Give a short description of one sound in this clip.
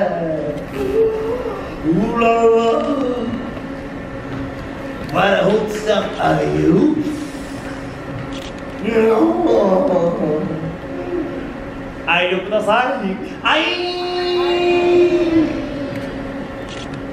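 A young woman speaks through loudspeakers in an echoing hall.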